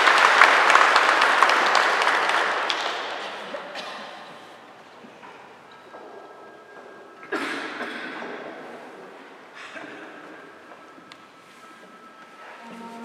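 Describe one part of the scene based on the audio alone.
An organ plays chords that ring out in a large echoing hall.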